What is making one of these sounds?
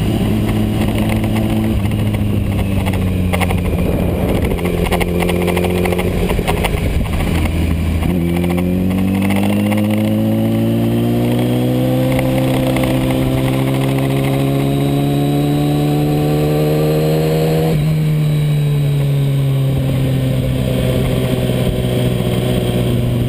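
A motorcycle engine roars up close, rising in pitch as it speeds up through the gears.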